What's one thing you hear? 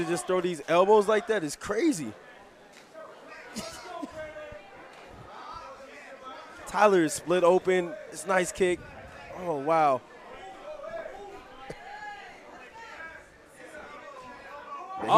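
A crowd murmurs and shouts in a large hall.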